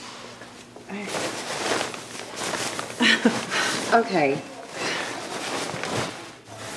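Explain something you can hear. A second woman answers in a lively voice.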